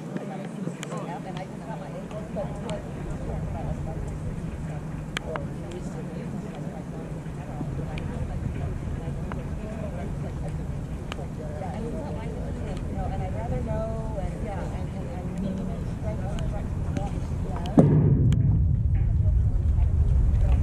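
Distant players and spectators call out across an open field.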